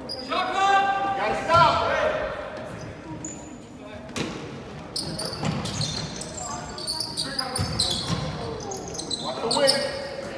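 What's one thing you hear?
Young men shout and cheer loudly in an echoing gym.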